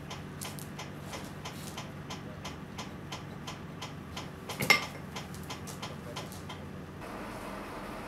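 A ratchet wrench clicks in quick, even rhythm.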